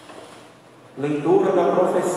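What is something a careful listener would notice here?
A man begins speaking loudly into a microphone close by.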